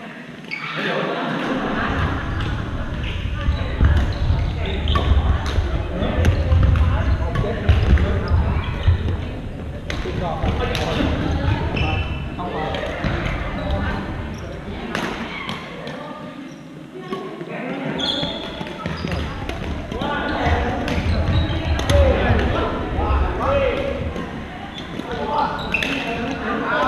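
Many people talk and call out across an echoing hall.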